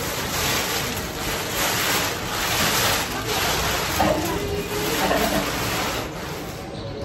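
Plastic sheeting rustles and crinkles.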